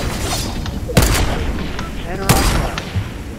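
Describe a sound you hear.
Sniper rifle shots crack loudly.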